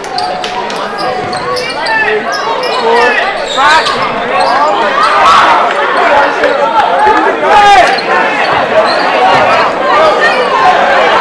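A crowd of spectators chatters loudly in a large echoing gym.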